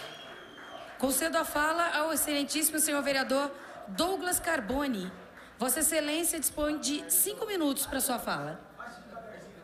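A woman speaks firmly into a microphone in a large room.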